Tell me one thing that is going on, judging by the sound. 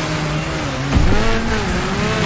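Vehicles crash together with a loud bang.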